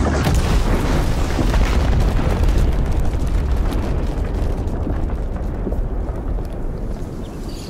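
A deep explosion rumble rolls and slowly fades.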